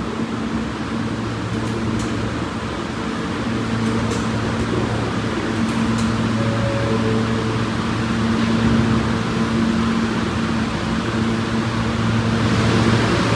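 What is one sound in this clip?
A subway train idles with a steady low hum.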